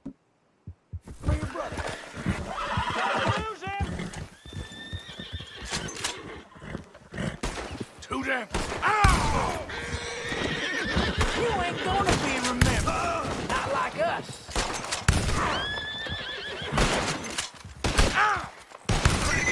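A horse's hooves thud on a dirt path at a trot.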